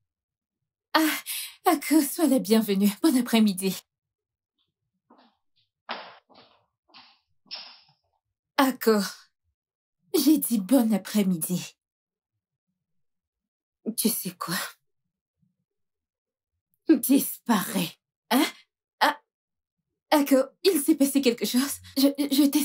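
A young woman speaks with animation and laughs close by.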